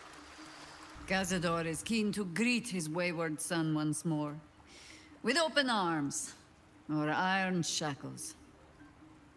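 A woman speaks calmly and clearly, close to the microphone.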